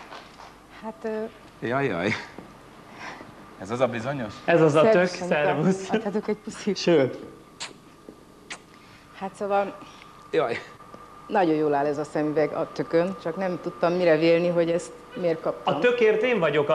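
A woman talks and laughs through a microphone.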